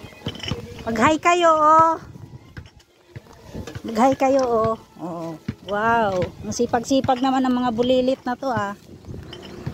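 Children talk and call out loudly nearby.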